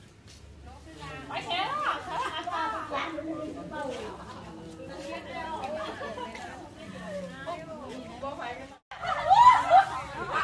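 Women talk and chatter nearby outdoors.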